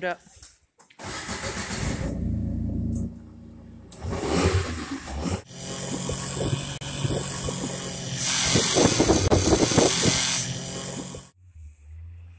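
A utility vehicle engine roars and revs.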